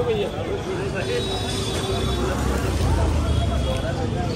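People chatter at a distance on a busy outdoor street.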